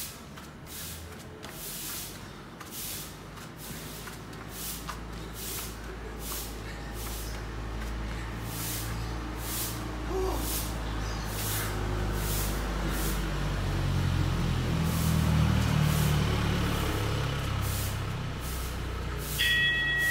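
Bare feet shuffle and step quickly on paving outdoors.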